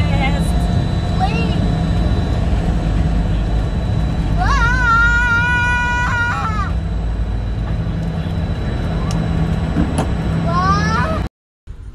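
A steady low engine drone fills an aircraft cabin.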